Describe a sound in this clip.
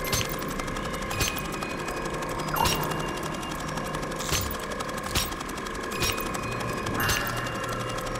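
A metal dial clicks sharply at each turn, about once a second.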